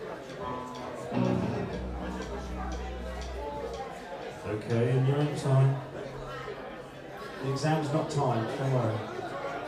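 A live band plays through loudspeakers.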